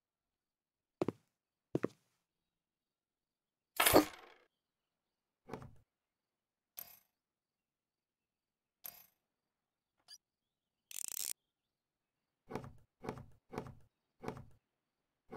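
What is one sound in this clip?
Short knocks and clicks sound in scattered bursts.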